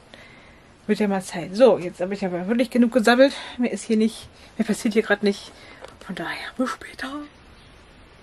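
A woman talks calmly, close to the microphone.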